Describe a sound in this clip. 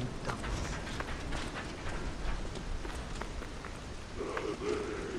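Footsteps hurry across a stone floor.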